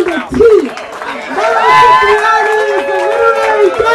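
A young man sings loudly nearby.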